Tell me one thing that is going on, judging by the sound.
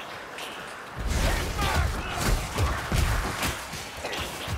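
Blades slash and strike in a loud, chaotic fight.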